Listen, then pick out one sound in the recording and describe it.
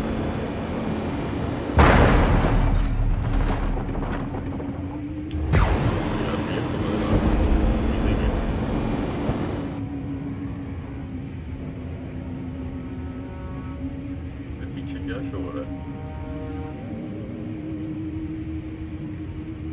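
A low steady hum drones throughout.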